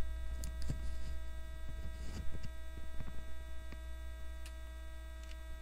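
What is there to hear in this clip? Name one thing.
Hands handle and tap plastic-wrapped card packs with light clicks and rustles.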